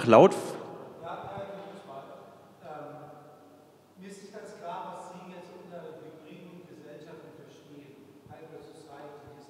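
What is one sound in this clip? An adult speaks over a loudspeaker in a large room.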